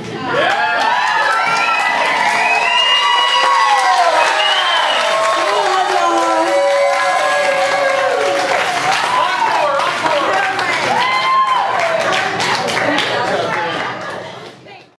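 A young woman whoops and laughs loudly near a microphone.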